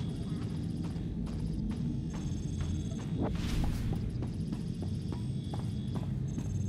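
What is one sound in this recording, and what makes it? Footsteps tap steadily on a hard metal floor.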